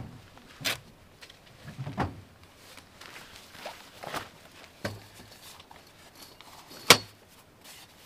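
Metal folding furniture clicks and clatters as it is set up.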